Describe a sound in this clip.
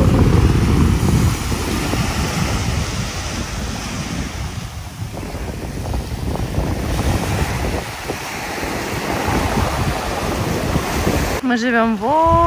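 Small waves wash and hiss onto a sandy shore.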